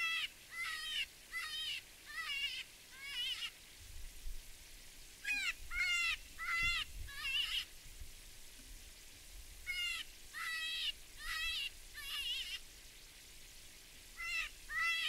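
A bird gives repeated high, chirping calls nearby.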